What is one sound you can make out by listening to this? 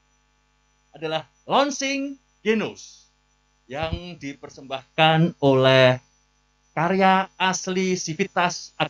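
A man speaks clearly through a microphone, announcing.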